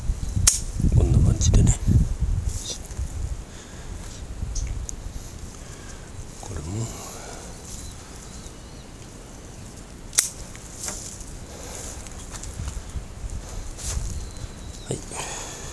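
Leafy branches rustle as a hand pushes through them.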